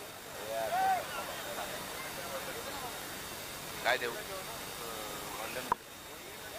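A crowd of boys and men chatter and call out nearby outdoors.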